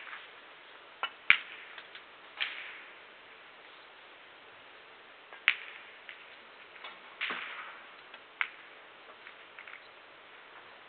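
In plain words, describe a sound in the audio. Snooker balls click together on the table.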